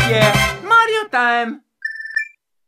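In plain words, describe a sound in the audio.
A short, cheerful video game fanfare plays.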